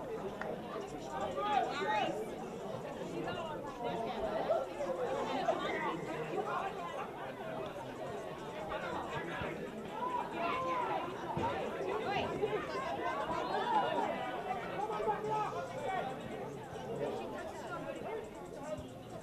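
Men shout to each other outdoors.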